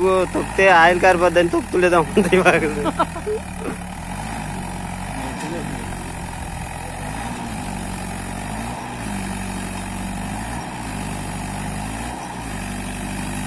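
A tractor engine chugs steadily, revving up and down as it churns through mud.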